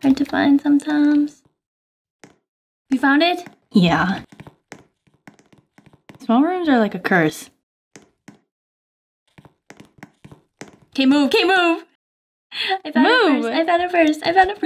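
Two young women talk and laugh with animation, close to a microphone.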